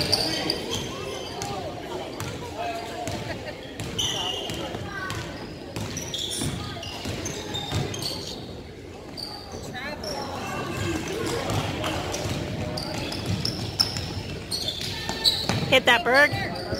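Sneakers squeak on a gym floor in a large echoing hall.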